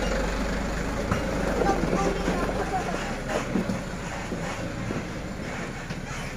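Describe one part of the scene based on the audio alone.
Gravel crunches and spills under a truck's tyres as it drives off.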